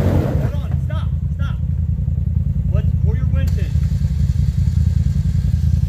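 An off-road vehicle's engine idles with a low, steady rumble.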